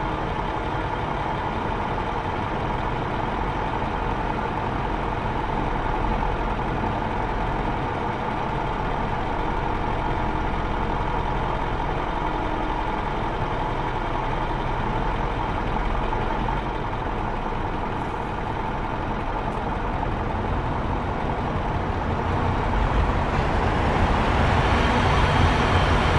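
Truck engines rumble and idle nearby.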